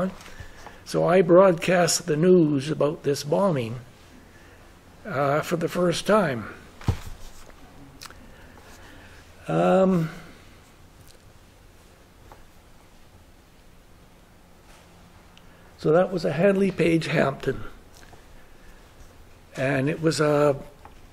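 An elderly man speaks calmly and close by, in short phrases with pauses.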